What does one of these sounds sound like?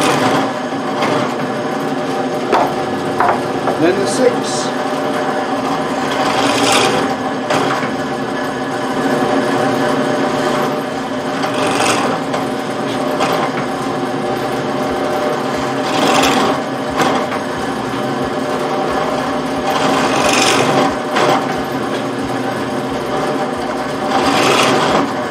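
A band saw hums steadily.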